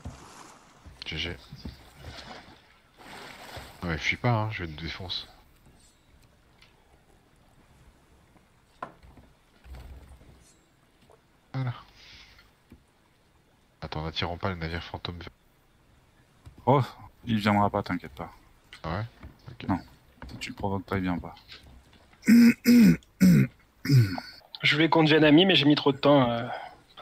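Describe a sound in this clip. A young man talks with animation into a close microphone, with pauses.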